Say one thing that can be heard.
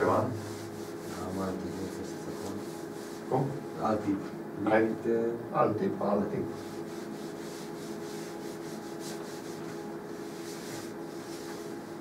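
A cloth rubs and wipes across a chalkboard.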